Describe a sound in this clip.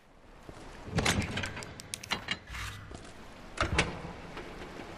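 A metal storage box lid clanks open.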